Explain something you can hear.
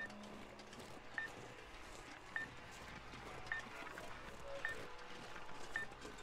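A handheld detector beeps at a steady, even pace.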